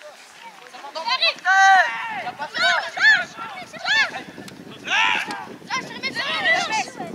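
Men and women nearby shout loudly with excitement.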